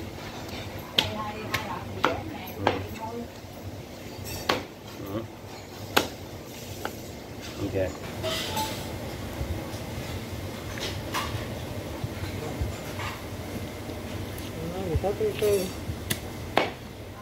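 A cleaver chops sharply through bone onto a wooden board.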